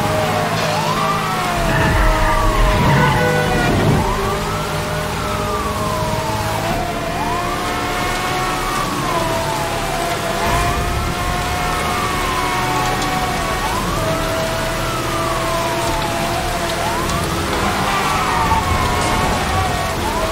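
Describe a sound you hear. A police siren wails steadily, rising and falling over and over.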